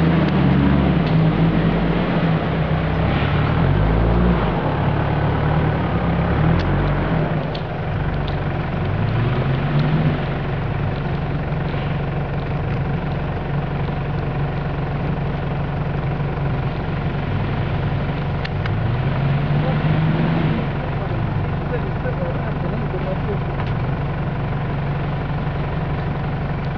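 An off-road engine revs and labours, rising and falling in pitch.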